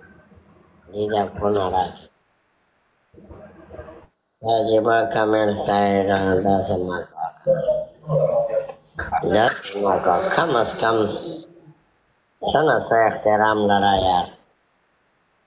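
A man speaks with animation, heard over an online call.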